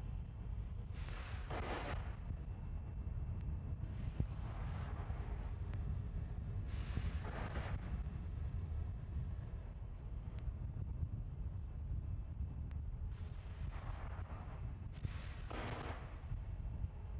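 Gas hisses in bursts as it vents from a rocket outdoors.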